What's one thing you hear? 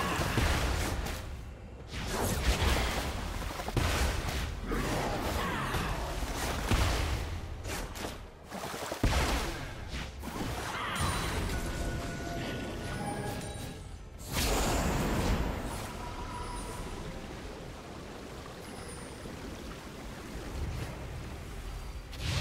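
Game spell effects whoosh and crackle.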